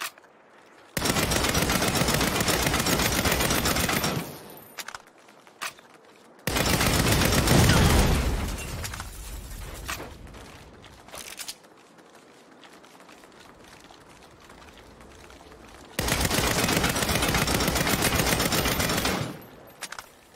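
A rifle fires loud rapid bursts.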